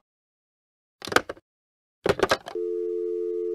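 A phone handset clatters as it is hung up and picked up.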